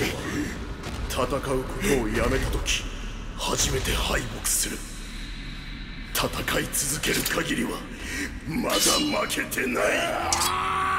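A young man speaks tensely and strains.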